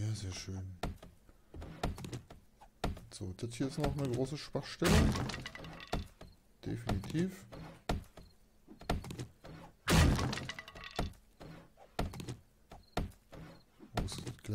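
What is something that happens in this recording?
An axe chops repeatedly at a wooden door.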